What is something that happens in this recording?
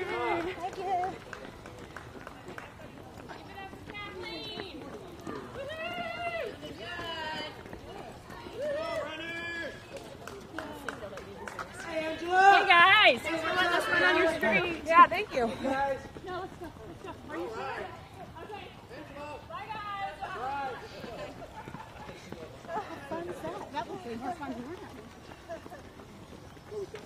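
Men and women talk and call out nearby, outdoors.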